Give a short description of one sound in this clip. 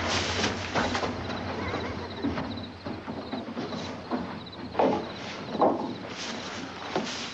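Footsteps shuffle and creak across a wooden floor.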